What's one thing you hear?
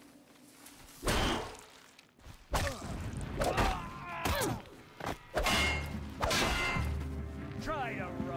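Heavy blows land with sharp thuds.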